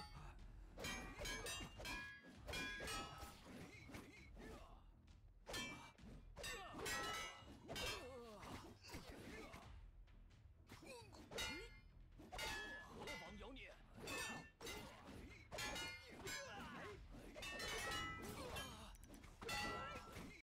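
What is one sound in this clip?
Blades clash and clang repeatedly in a fierce melee.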